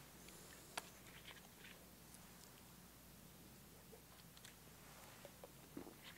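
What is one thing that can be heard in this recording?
An elderly man drinks from a plastic bottle.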